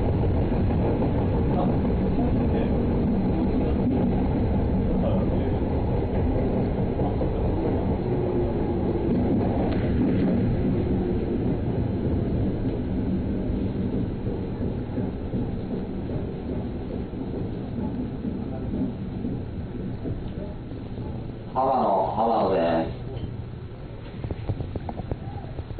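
A train rumbles and rattles steadily along the tracks, growing a little quieter toward the end.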